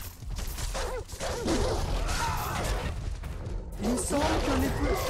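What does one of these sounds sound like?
Heavy blows thud against a creature.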